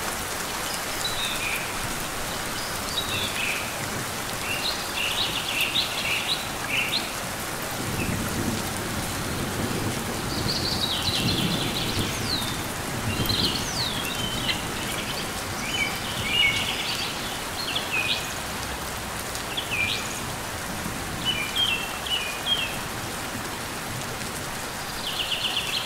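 A small bird chirps in short, high twittering bursts.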